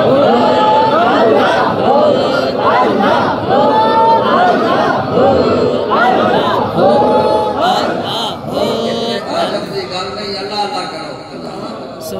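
An elderly man recites in a melodic, drawn-out voice into a microphone, heard over loudspeakers.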